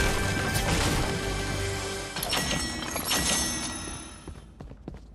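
A treasure chest opens with a bright, shimmering chime.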